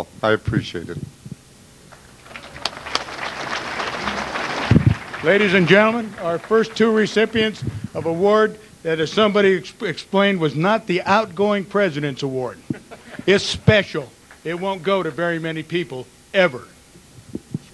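An elderly man speaks calmly into a microphone over loudspeakers in a large hall.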